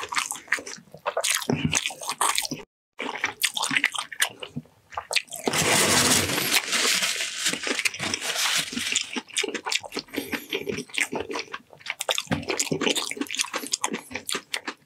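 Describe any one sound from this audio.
Sticky, wet meat squelches and smacks close to a microphone.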